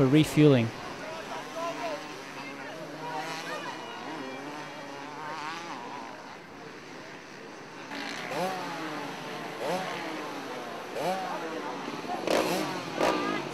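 Several men talk nearby outdoors, with voices overlapping.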